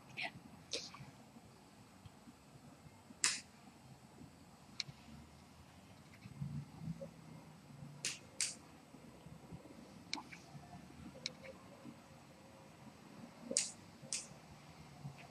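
Fingers snap sharply close by, now and then.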